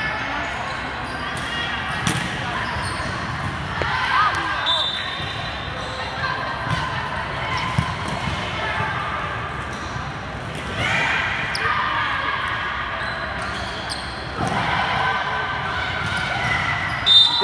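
A volleyball thumps off players' hands and arms.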